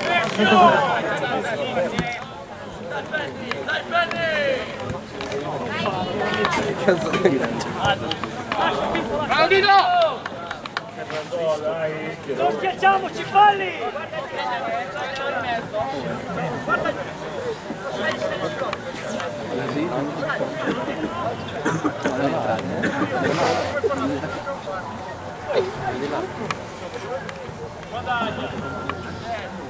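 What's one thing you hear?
Men talk nearby with animation, outdoors.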